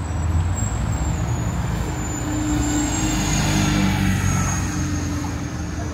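A city bus rumbles past close by.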